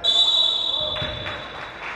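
A referee's whistle blows a sharp, steady blast.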